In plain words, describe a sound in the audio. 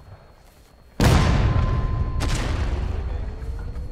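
A cannon fires with a loud, deep boom that rumbles away.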